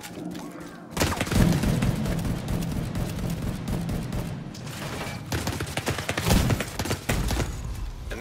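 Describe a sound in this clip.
Rifle gunfire cracks in a shootout.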